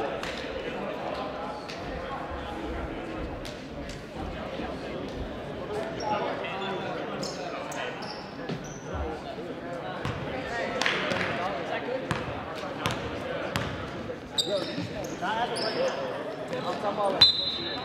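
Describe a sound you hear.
A basketball bounces on a wooden gym floor.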